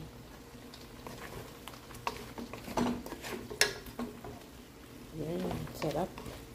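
A wooden spoon scrapes and knocks against a pan.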